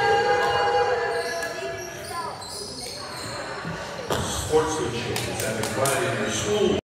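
A crowd of people talks and calls out in a large echoing hall.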